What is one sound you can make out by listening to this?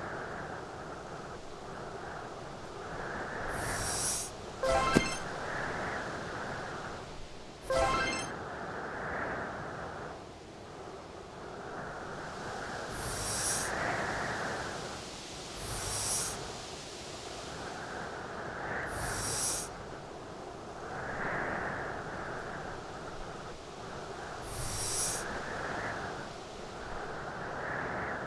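A heavy boulder scrapes as it is pushed across ice.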